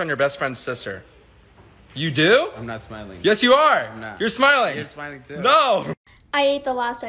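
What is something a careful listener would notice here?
A young man talks with animation, close by.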